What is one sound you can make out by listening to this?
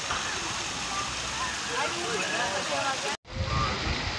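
Water splashes steadily from fountains into a pool.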